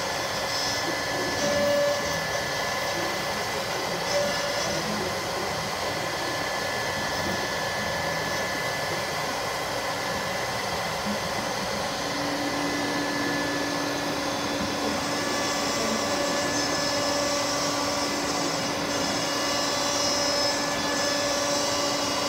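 A router spindle whines steadily as it carves into wood.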